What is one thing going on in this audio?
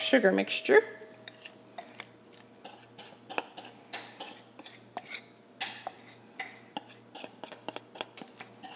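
A spatula scrapes and taps against a bowl.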